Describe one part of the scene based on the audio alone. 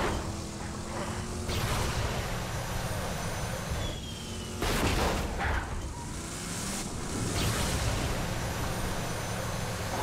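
A vehicle thuds and rattles over rough ground.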